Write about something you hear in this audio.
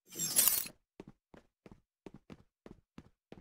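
Boots run on hard ground with quick, even footsteps.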